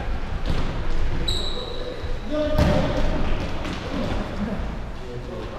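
Footsteps thud and patter on a wooden floor as players run.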